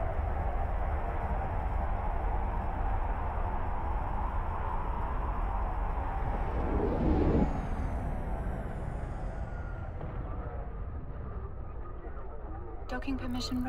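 A spaceship's engine rumbles with a steady low hum.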